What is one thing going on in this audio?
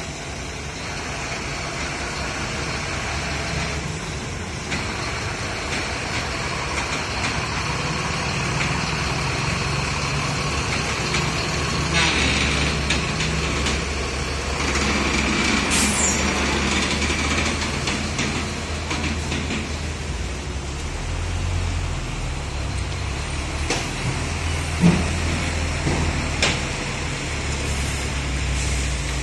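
A heavy truck engine rumbles deeply as it passes close by.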